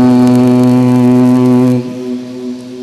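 A man chants a long held note through a microphone, echoing in a large space.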